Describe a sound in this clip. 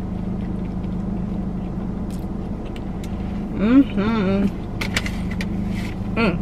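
A young woman chews food noisily.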